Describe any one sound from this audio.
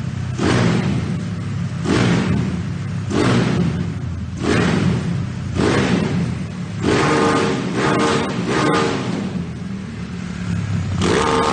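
A motorcycle engine revs sharply in quick bursts as the throttle is twisted.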